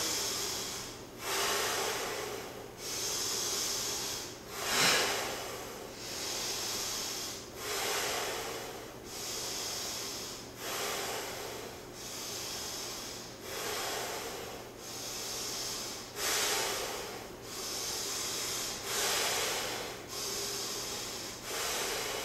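Two men breathe deeply in a slow, steady rhythm.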